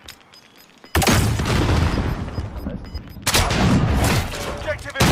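A weapon fires with sharp bursts.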